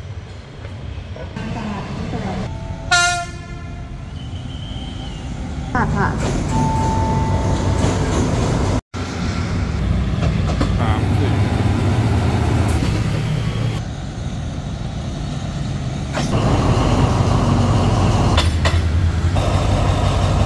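Steel wheels clatter over the rail joints.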